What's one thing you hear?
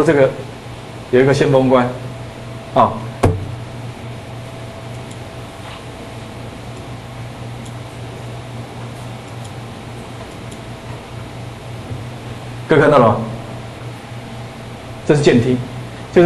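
A man speaks through a microphone in short bursts, with long pauses.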